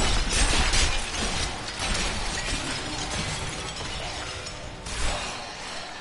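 Monsters shriek as they die.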